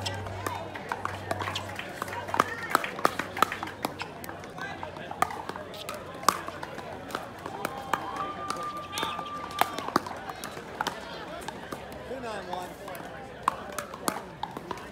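Players' shoes squeak and scuff on a hard court.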